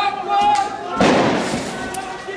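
A tear gas launcher fires with a sharp bang.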